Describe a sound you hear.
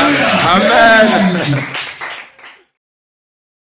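A man preaches with animation through a microphone.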